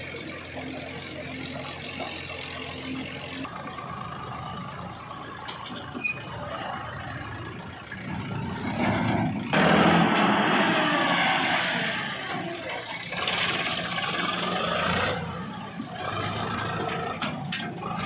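A tractor engine chugs steadily nearby.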